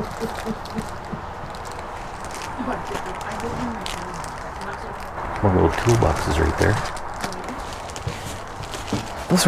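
Packages rustle and clatter as they are handled.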